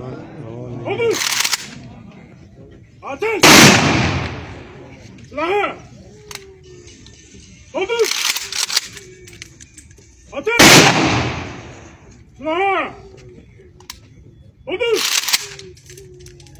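Rifles fire a volley together in loud, sharp bursts, again and again.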